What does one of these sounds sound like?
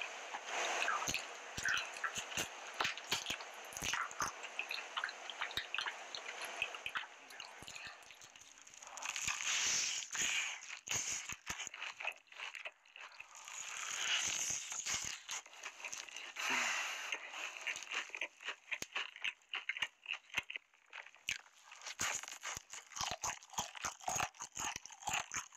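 Wet, sticky chewing and smacking sounds come close to a microphone.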